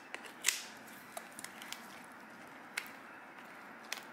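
A shell cracks and crunches as hands pull it apart.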